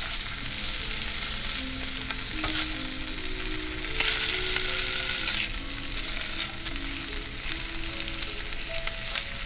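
Bacon sizzles and crackles in a hot pan.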